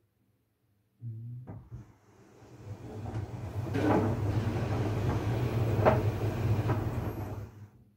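A tumble dryer motor starts up and hums steadily.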